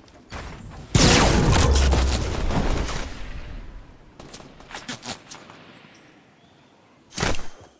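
Wind rushes past a gliding character.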